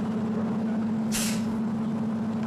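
A bottle cap is twisted open with a fizzing hiss.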